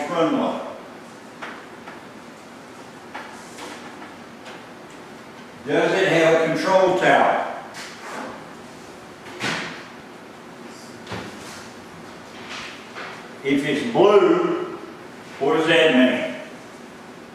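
An older man speaks aloud in short bursts to a room.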